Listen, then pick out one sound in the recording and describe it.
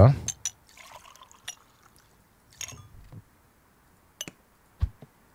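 Glass beer mugs clink against each other and a counter.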